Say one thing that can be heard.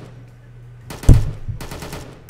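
A gun clicks sharply as it is picked up.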